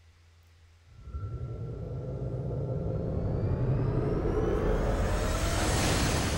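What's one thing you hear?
A whooshing sound swells and rises steadily.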